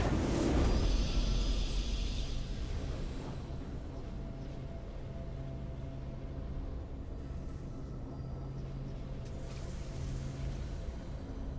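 A soft, steady victory tune plays.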